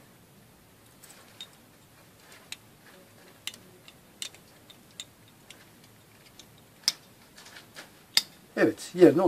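A pistol's metal parts click and clack as they are handled.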